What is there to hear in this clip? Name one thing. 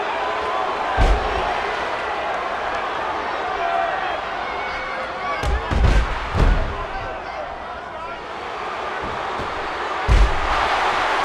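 Bodies slam heavily onto a wrestling mat with loud thuds.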